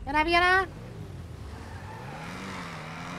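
A car engine revs as the car pulls away.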